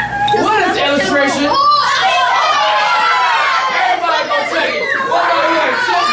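A man speaks to a class with animation.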